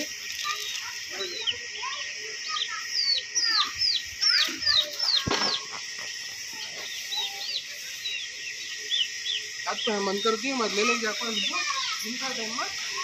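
Small birds chirp and squeak in quick, rising calls.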